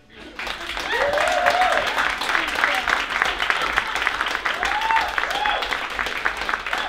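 Audience members whoop and cheer.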